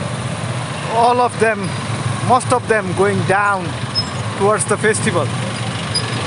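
Vehicle horns honk repeatedly.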